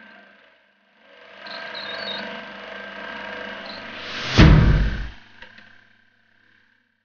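Machine gears whir and grind.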